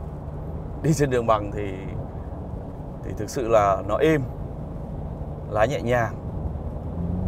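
A car drives along a highway with a steady low rumble.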